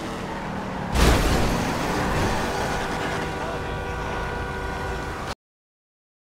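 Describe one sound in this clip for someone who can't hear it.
Tyres screech as a car skids around.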